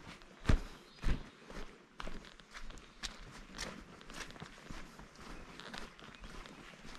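Footsteps crunch on a dry forest path.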